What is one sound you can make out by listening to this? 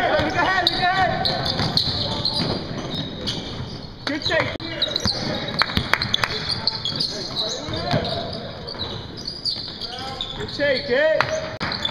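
Sneakers squeak sharply on a hardwood court in an echoing gym.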